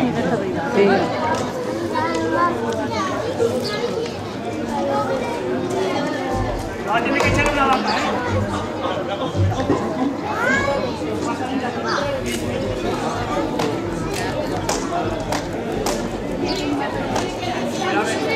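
A crowd of men and women shout and talk with excitement nearby, outdoors.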